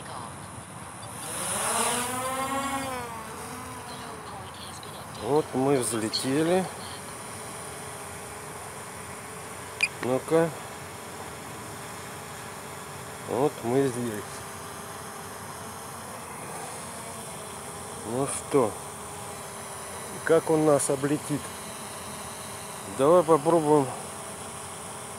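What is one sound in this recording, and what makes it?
A drone's propellers whir steadily overhead.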